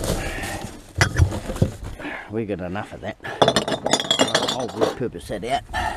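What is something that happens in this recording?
Glass bottles clink together.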